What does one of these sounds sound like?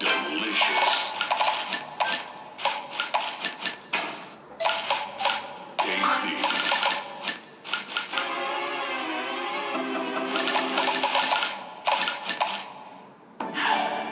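Game pieces burst with quick bright chiming pops.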